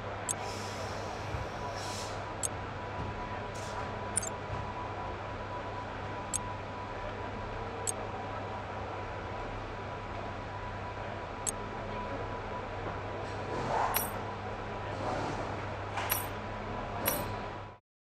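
Short menu clicks sound as selections change.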